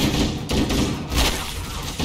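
A glowing energy blast crackles and roars.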